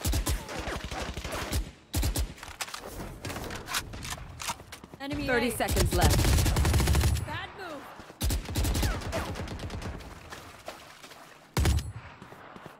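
Rapid rifle shots crack in bursts.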